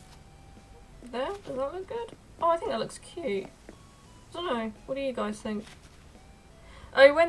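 A young woman speaks with animation, close to a microphone.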